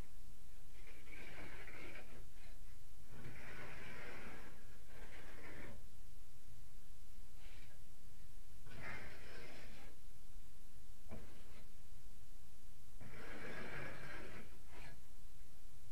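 A cloth rubs against window glass in short bursts.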